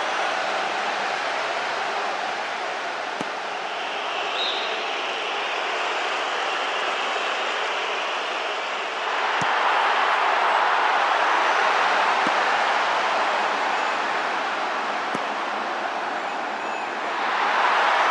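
A large stadium crowd roars steadily, swelling louder at times.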